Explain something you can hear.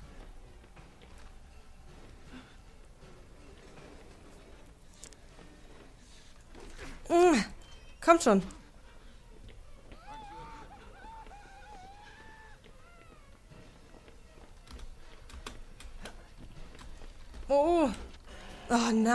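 A young woman talks quietly into a close microphone.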